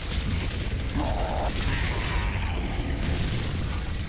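A chainsaw revs and grinds.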